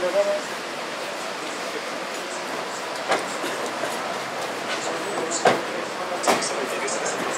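Footsteps tap on a pavement nearby.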